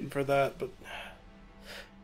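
A short fanfare plays to announce a defeat.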